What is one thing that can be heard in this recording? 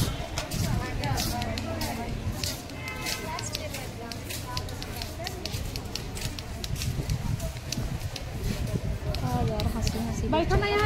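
Young women chat with each other close by outdoors.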